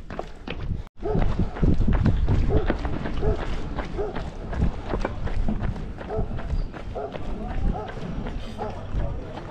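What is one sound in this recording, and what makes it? Footsteps tap on a stone walkway.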